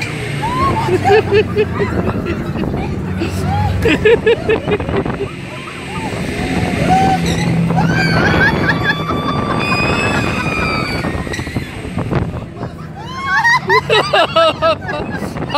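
A young girl laughs and squeals close by.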